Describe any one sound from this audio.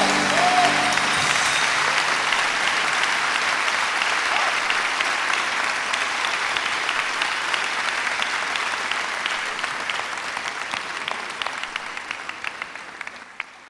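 A large audience applauds and cheers loudly in a big hall, then the applause slowly fades.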